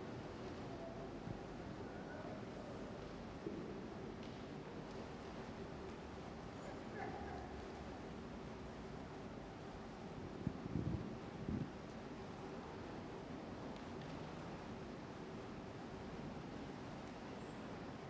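A man speaks quietly in a large echoing room.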